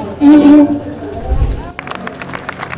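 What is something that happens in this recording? A violin plays a melody.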